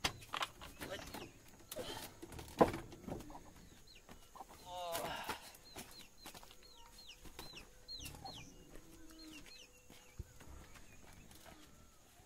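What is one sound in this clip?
Footsteps thud on wooden boards and a dirt path.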